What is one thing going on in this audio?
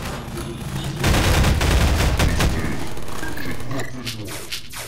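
A video game energy weapon fires with loud crackling bursts.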